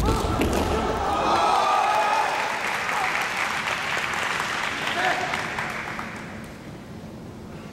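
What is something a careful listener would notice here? A crowd applauds and then fades.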